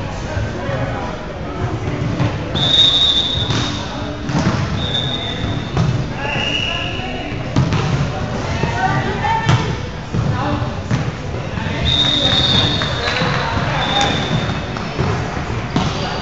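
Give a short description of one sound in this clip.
Players call out and shout to each other in a large echoing gym.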